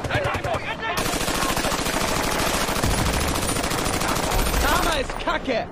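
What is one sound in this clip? A heavy machine gun fires a long, rapid burst close by.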